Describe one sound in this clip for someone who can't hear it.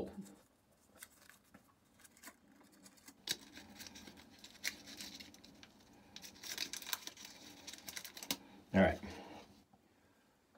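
Small paper and plastic crinkle in a man's hands.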